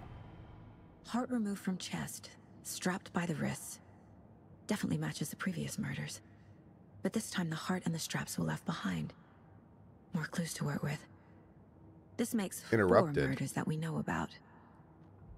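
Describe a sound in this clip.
A woman speaks calmly and quietly, close by.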